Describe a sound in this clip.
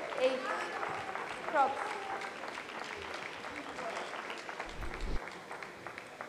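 A small crowd claps.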